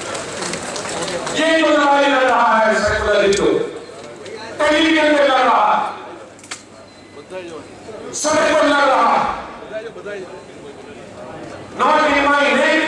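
An elderly man speaks forcefully into a microphone, heard over loudspeakers in a large echoing hall.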